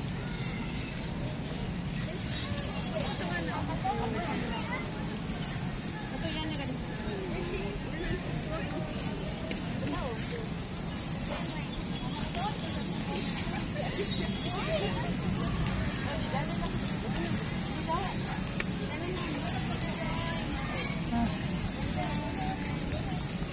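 Children chatter and call out nearby, outdoors.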